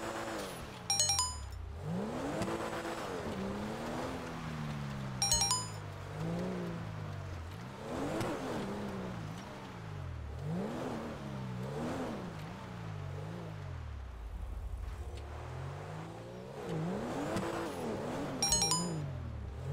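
A short electronic notification chime sounds a few times.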